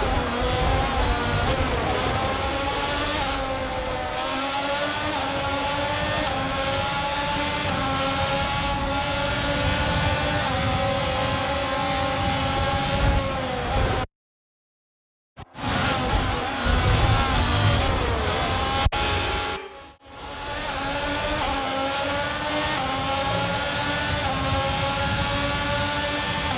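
A racing car engine whines loudly, rising in pitch as it speeds up through the gears.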